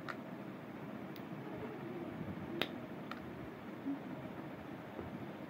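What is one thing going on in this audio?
A small glass vial clicks and taps close by.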